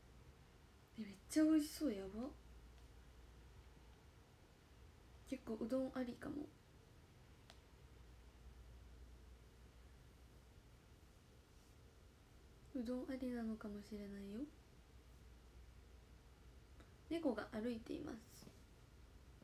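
A young woman speaks softly in short bursts, close to the microphone.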